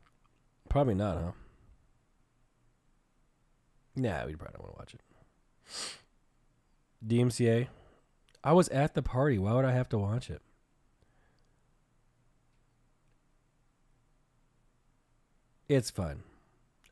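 A young man speaks in short, animated bursts close to a microphone, with pauses between.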